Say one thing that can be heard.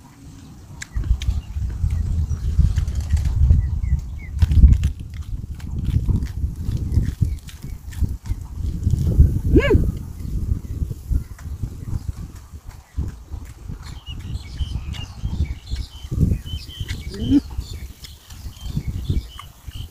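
A man chews and smacks his lips while eating.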